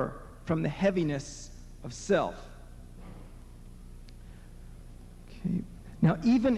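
A man speaks slowly and deliberately into a microphone, heard through a loudspeaker.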